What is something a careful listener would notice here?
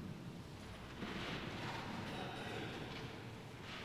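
An elderly woman speaks calmly into a microphone in an echoing room.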